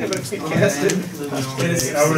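A deck of playing cards is shuffled by hand.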